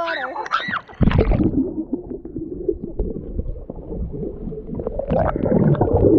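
Underwater bubbling and rumbling sound muffled and low.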